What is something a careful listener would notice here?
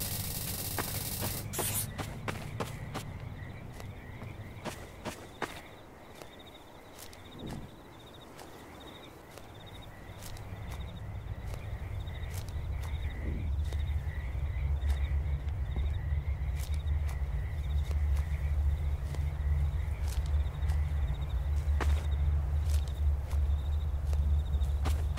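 Footsteps crunch softly on dirt at a steady walking pace.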